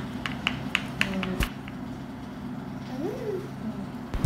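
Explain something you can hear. A small stamp taps lightly on paper.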